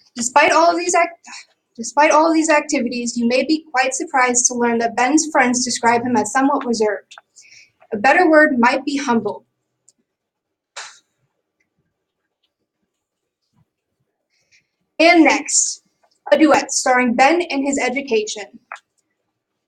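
A young woman speaks clearly nearby.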